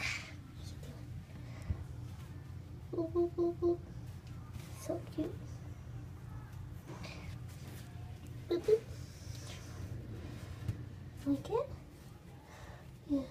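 A fabric toy rustles as a hand shakes it against a cat.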